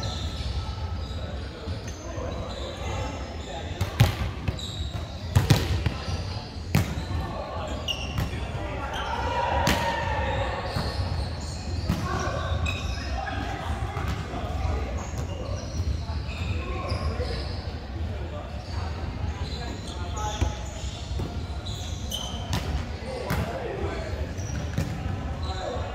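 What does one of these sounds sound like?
Sneakers squeak on the hard floor.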